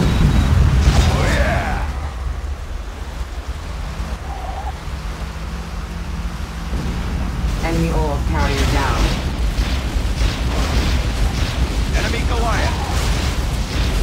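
Energy guns fire with sharp, crackling zaps.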